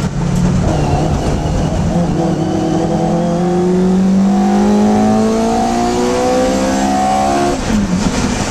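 A small four-cylinder Hillman Imp racing car engine accelerates hard, heard from inside the cockpit, its pitch climbing.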